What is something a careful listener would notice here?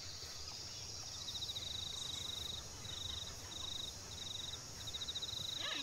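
Footsteps rustle softly on grass.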